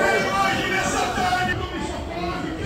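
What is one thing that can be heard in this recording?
A man preaches loudly.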